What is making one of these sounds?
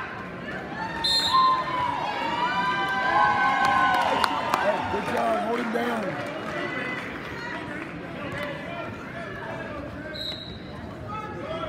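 A whistle blows sharply.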